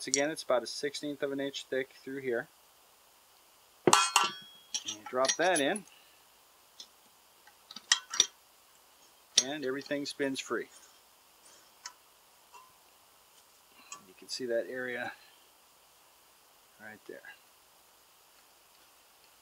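Metal engine parts click and clink together as they are fitted.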